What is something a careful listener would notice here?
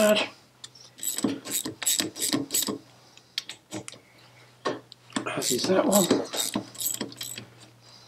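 A ratchet wrench clicks in quick bursts as it turns a bolt.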